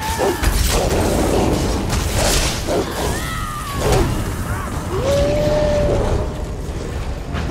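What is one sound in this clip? Magic spells crackle and burst with loud whooshes.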